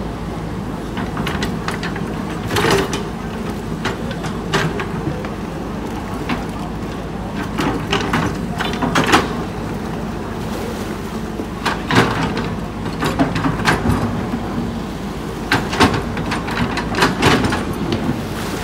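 An excavator bucket scrapes and thuds into earth and rocks.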